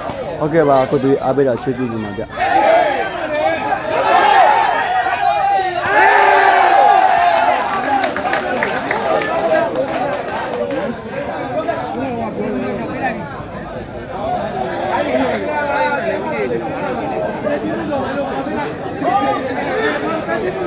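A large outdoor crowd chatters and shouts loudly throughout.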